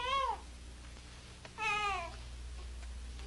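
A woman wails in anguish close by.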